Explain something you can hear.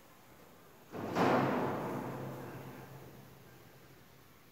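A metal bell rings once loudly and slowly rings out in an echoing hall.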